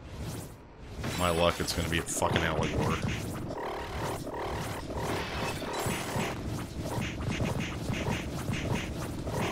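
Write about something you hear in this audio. Magic energy blasts whoosh and crackle repeatedly.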